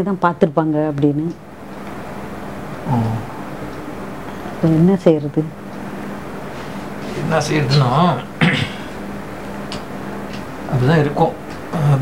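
A woman talks quietly and closely.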